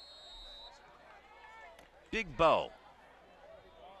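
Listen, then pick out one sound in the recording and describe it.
Football players collide and thud to the ground in a tackle.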